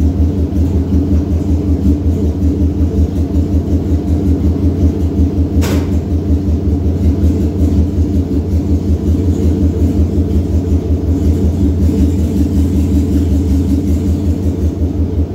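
A car engine idles with a deep, steady, throbbing exhaust rumble close by.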